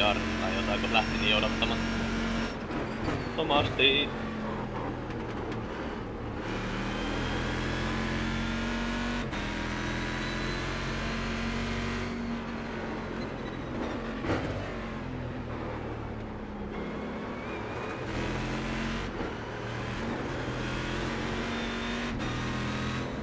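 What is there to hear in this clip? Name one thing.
A racing car engine roars steadily, its pitch rising and falling as the gears shift.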